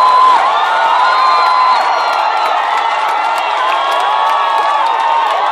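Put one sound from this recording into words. A large crowd cheers loudly in an open stadium.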